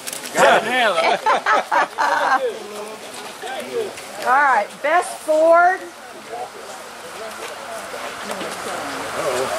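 A crowd murmurs quietly in the background.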